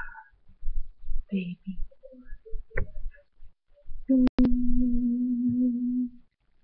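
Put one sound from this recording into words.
A woman speaks quietly and close up, as if into a webcam microphone.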